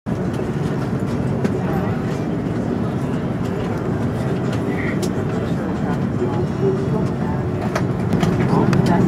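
A jet engine roars steadily with a low hum, growing a little louder near the end.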